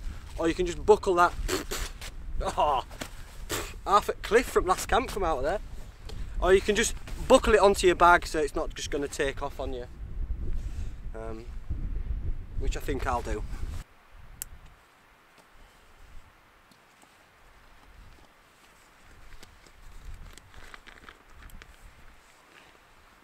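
Nylon fabric rustles as a bag is handled.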